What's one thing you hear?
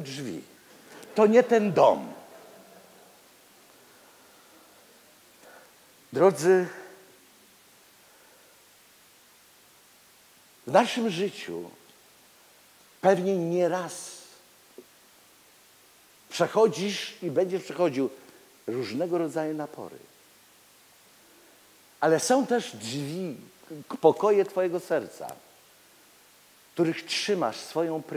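A middle-aged man preaches with animation through a microphone, in bursts with long pauses, in a large echoing hall.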